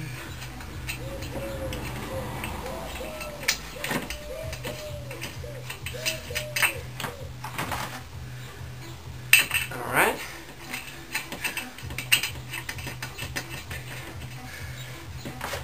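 Metal parts clink and clatter close by.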